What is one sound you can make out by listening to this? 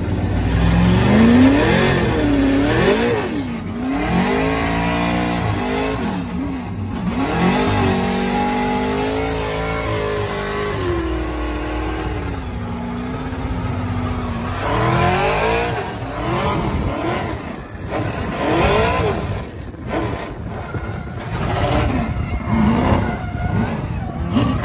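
A drift car engine revs hard, heard from inside the stripped race car.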